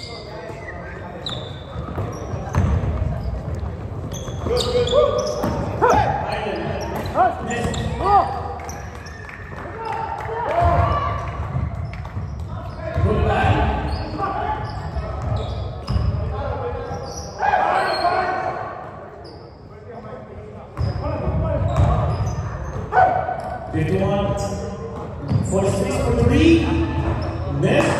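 Men call out to each other during play in a large echoing gym.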